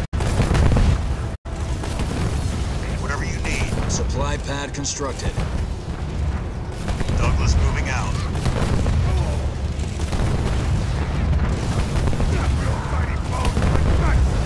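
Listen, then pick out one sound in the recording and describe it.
Gunfire and blasts crackle in a battle.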